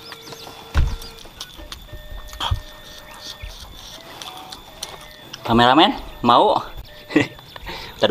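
A man slurps and chews noodles noisily, close up.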